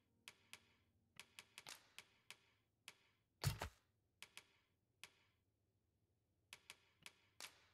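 Short menu clicks tick as a cursor moves from item to item.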